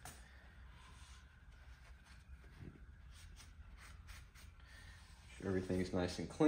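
A cloth rubs against metal.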